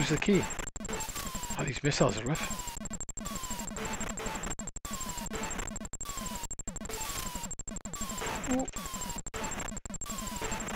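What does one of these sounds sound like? Short falling electronic tones repeat about once every second, like shots being fired.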